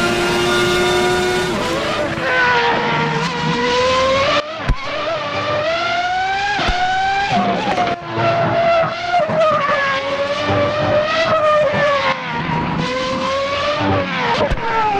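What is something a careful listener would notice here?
A racing car engine screams at high revs, rising and falling as gears shift.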